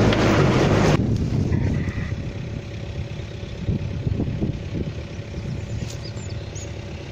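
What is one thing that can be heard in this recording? Engines idle in the distance outdoors.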